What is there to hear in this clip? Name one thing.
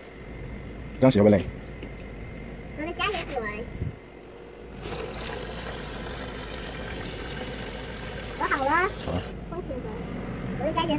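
A young child talks nearby in a high voice.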